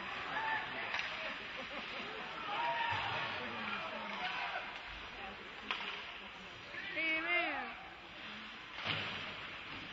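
Sticks knock against a puck on ice with sharp clacks echoing in a large hall.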